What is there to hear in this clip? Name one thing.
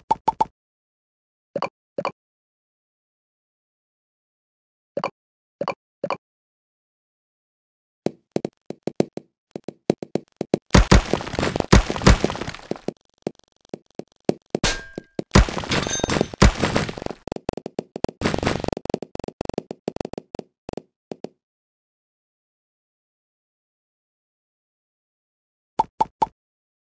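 Short chiming game blips sound now and then.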